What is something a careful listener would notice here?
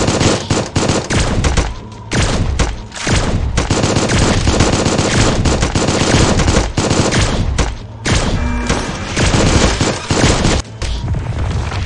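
Rapid game gunfire rattles in quick bursts.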